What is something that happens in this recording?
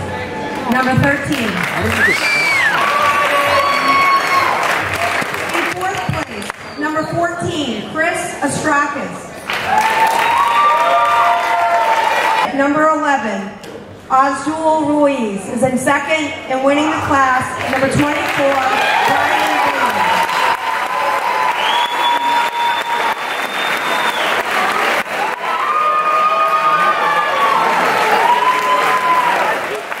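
A crowd cheers and whistles in a large echoing hall.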